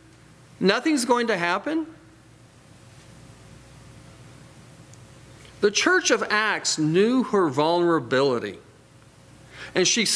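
A middle-aged man speaks with emphasis through a microphone, pausing between phrases.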